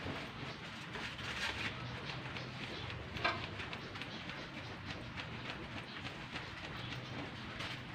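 Cardboard flaps as a fan over a grill.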